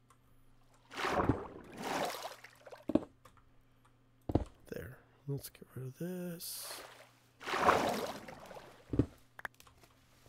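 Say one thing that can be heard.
Water splashes in short bursts.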